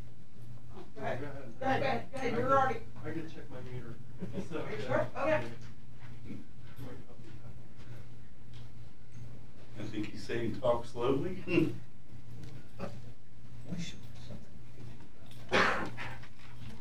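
A middle-aged man answers calmly through a microphone.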